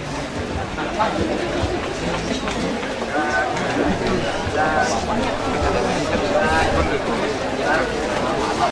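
A crowd of young people chatters all around, close by.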